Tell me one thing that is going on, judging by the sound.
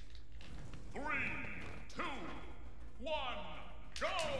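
A man speaks close to a microphone with animation.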